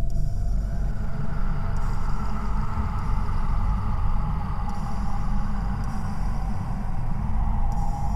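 Wind rustles the leaves of trees and bushes outdoors.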